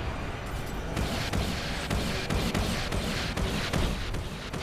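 A heavy gatling gun fires in a rapid rattle.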